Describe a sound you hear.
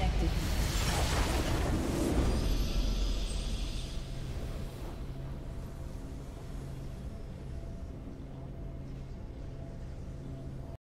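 A triumphant fanfare swells and then settles into a steady, sustained musical drone.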